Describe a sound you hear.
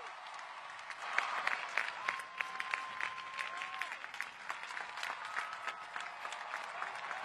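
A large crowd claps and cheers outdoors.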